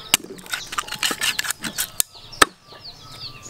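A knife chops through raw chicken on a wooden board.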